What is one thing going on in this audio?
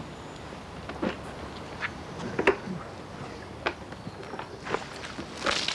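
Water splashes and sloshes in a bucket.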